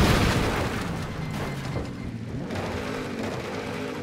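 A car crashes and tumbles with a metallic clatter.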